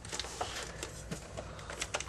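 A hand knocks against plastic game cases.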